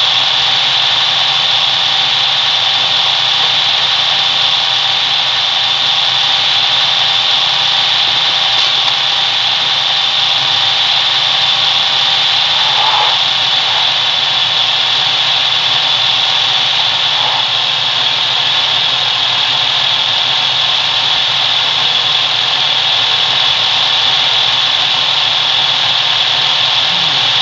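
A vehicle engine hums steadily as it drives along.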